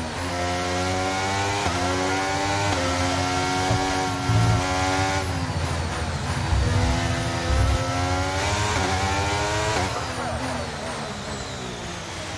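A racing car engine screams at high revs, climbing in pitch through quick gear shifts.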